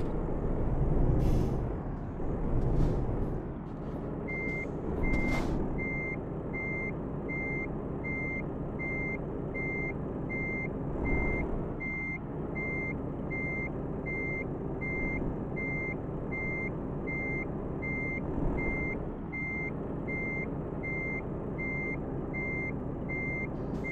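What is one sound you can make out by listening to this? A truck engine rumbles steadily at low revs.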